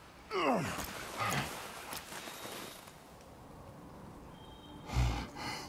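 Heavy footsteps crunch on snow.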